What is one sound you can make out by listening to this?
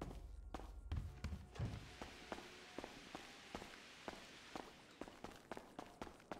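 Footsteps tap on hard stairs.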